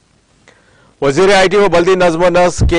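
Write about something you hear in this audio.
A man speaks steadily and clearly into a microphone.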